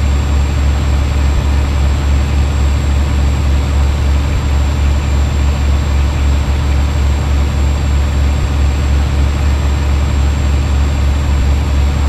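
A truck engine hums with a low, steady drone as it drives along a road.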